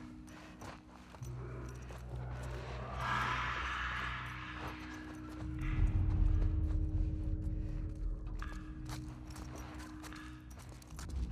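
Soft footsteps shuffle across a hard floor.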